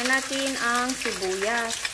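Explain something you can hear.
Onions drop into a pan.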